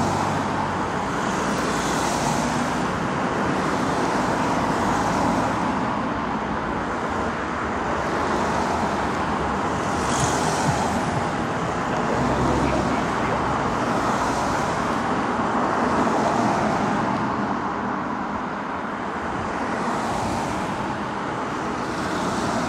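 Heavy truck engines rumble steadily as the trucks drive past at a distance.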